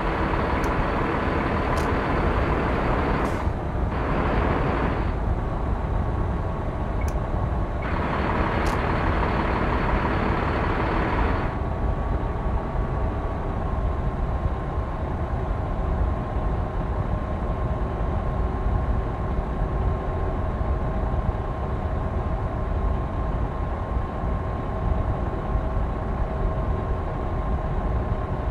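Tyres roll with a steady roar on a road.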